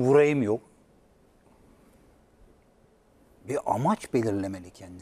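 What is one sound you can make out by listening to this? A middle-aged man speaks with animation into a studio microphone.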